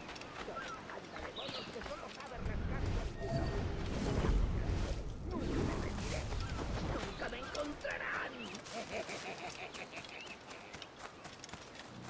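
Footsteps rustle quickly through grass and bushes.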